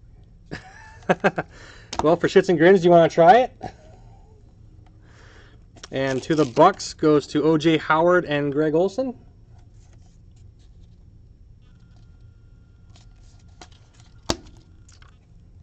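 Stiff cards and plastic sleeves rustle and tap as hands handle them.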